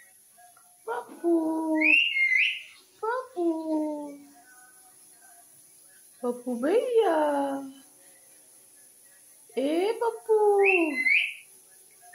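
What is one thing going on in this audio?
A parrot chatters in gliding, voice-like babbles.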